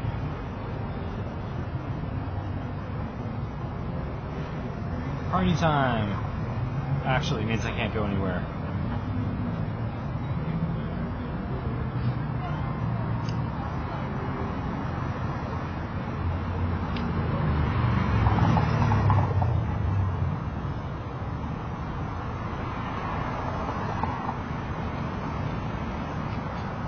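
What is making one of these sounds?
A bicycle tyre hums along the pavement.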